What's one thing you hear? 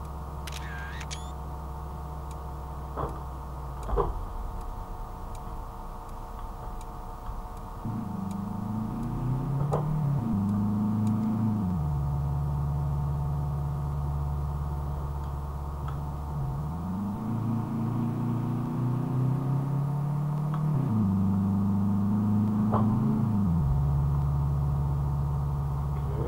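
A car engine hums steadily, its revs rising and dropping with gear changes.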